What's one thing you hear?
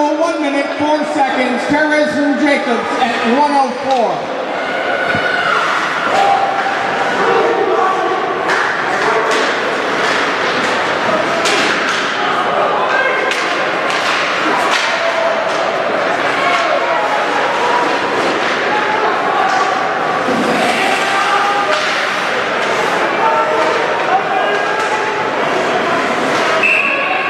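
A crowd of spectators chatters and cheers in an echoing rink.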